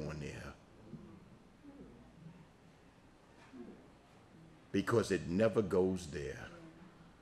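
An older man speaks into a microphone in bursts, quietly at first and then loudly and with animation.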